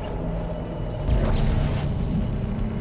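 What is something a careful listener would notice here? A weapon fires a sharp energy blast.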